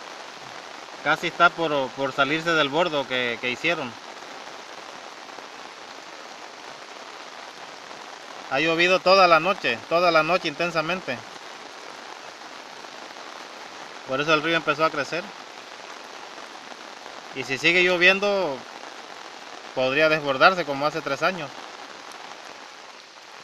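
A swollen river rushes past steadily outdoors.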